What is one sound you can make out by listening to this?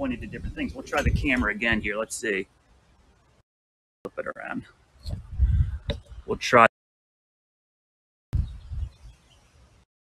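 A man talks with animation close to a microphone, outdoors.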